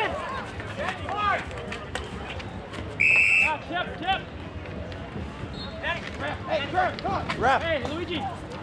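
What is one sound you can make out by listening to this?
Street hockey sticks clack against a ball and the asphalt outdoors.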